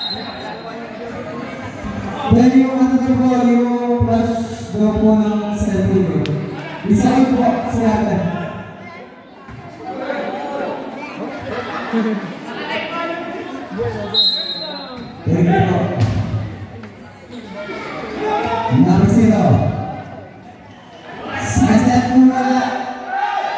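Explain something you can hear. A crowd of young men and women shouts and cheers loudly nearby.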